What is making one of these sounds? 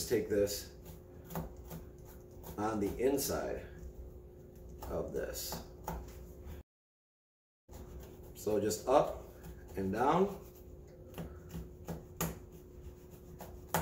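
A brush scrubs against fabric with short, rough strokes.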